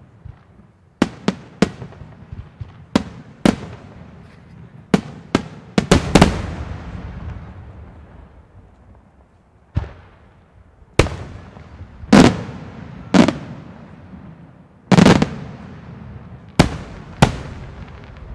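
Fireworks burst with loud booming bangs that echo away.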